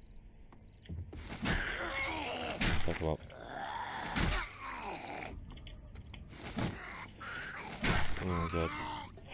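A creature growls and snarls up close.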